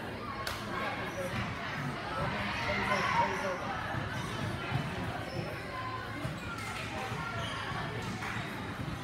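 Feet thump on a balance beam.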